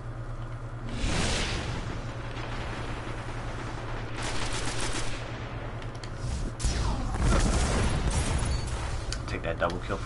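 Video game gunfire and blasts boom in short bursts.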